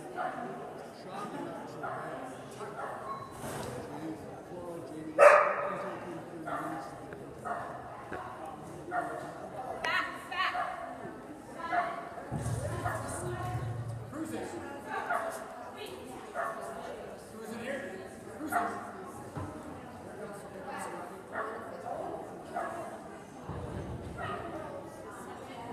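A woman calls out commands to a dog with animation, echoing in a large hall.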